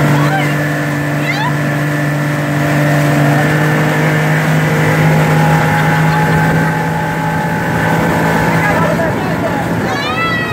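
Water churns and rushes in a boat's wake.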